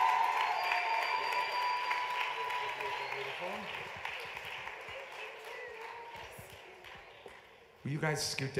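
Applause and cheering from an audience fade away.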